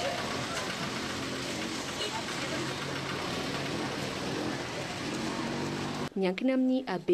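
A crowd of people chatters and murmurs nearby.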